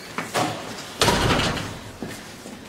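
A door bangs.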